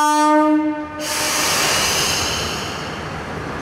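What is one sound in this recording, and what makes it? Air hisses from a train's brakes.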